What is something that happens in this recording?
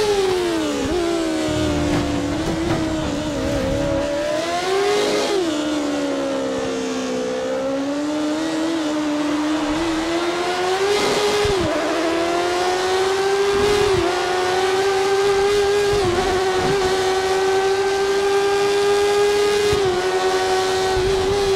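A racing car engine whines loudly, rising and falling in pitch as the car speeds up and slows for corners.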